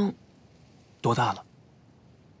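A young man answers quietly and briefly, close by.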